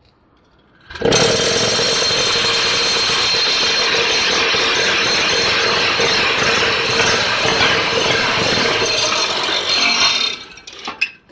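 A block-making machine's motor vibrates with a loud, steady rattling hum.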